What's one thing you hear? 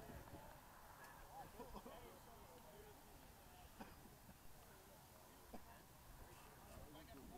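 Distant voices of young players call out across an open field.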